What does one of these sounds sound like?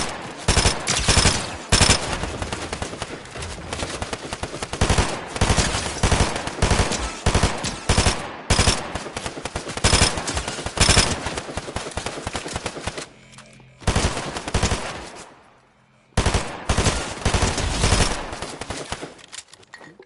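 Gunshots crack rapidly and repeatedly, close by.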